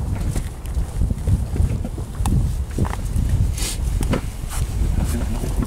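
Waves slap against an inflatable boat.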